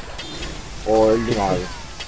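Flames burst with a whoosh.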